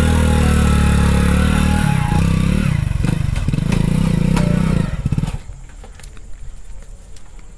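A motorcycle engine revs loudly up close, then putters away as the motorcycle rides off.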